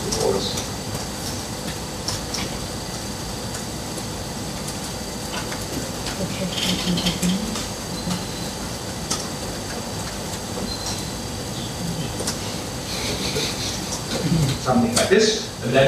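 A man types on a keyboard with quick, light clicks.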